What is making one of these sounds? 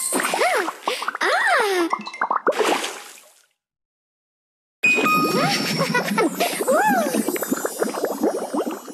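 Wobbly jelly squelches and pops in quick, bubbly bursts.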